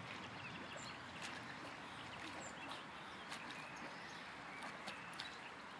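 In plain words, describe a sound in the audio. A swimmer splashes softly through the water outdoors.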